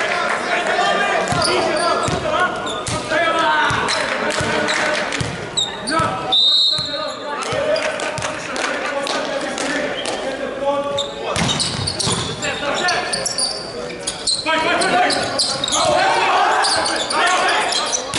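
A volleyball is struck hard with a slap.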